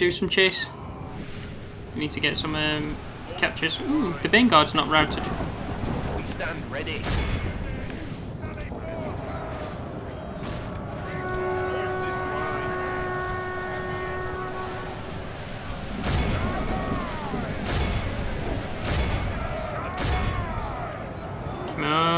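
Weapons clash and clatter in a crowded battle.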